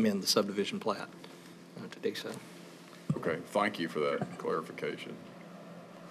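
A middle-aged man speaks into a microphone in a calm, matter-of-fact way.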